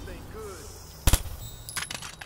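A single gunshot cracks loudly.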